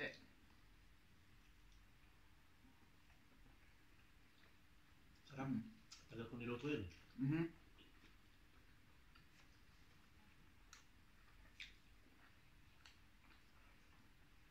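A man chews and bites into food with small wet crunches.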